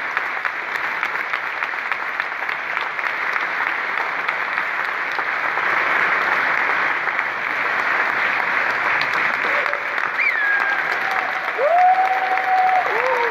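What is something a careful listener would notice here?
An audience applauds and cheers in a large echoing hall.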